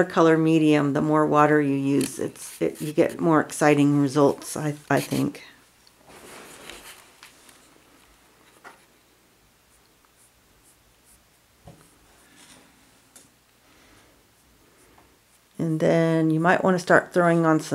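A paintbrush dabs softly on stretched fabric.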